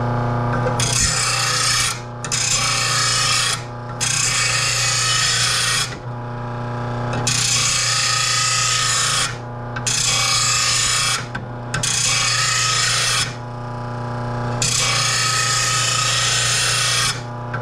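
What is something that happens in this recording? A grinder loudly grinds metal in repeated bursts.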